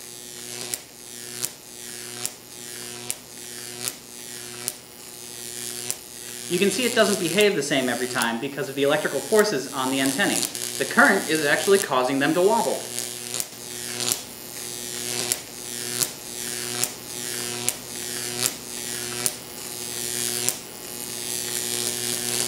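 A transformer hums steadily.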